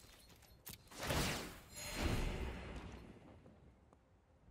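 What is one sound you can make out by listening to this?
A deep whooshing game sound effect swells and fades.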